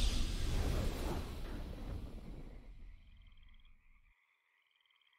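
A deep booming victory fanfare plays and fades away.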